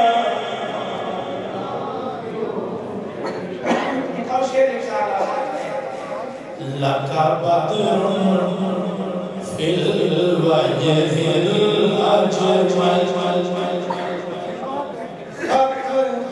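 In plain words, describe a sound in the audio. A man sings a slow chant into a microphone, heard through loudspeakers in an echoing hall.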